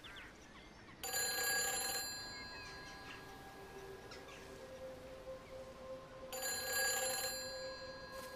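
A payphone rings in short bursts.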